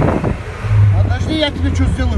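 A man talks loudly through a car window, close by.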